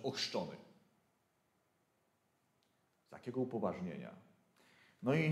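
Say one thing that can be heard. A man speaks calmly in a room with a slight echo, pausing between phrases.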